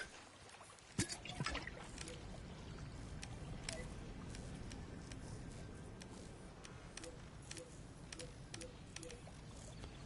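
Soft menu clicks sound.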